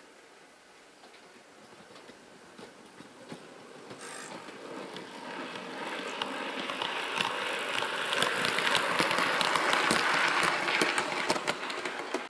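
A model train rumbles and clicks along the track, growing louder as it approaches and passes close by.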